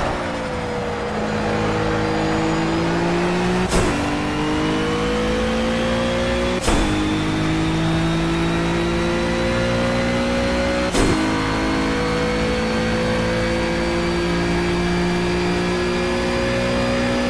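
A racing car engine roars, rising in pitch as it speeds up.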